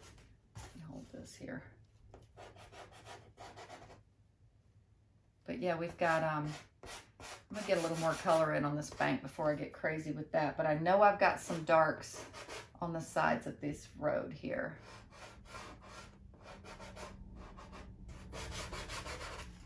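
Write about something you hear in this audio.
Soft pastel scrapes and rubs on paper up close.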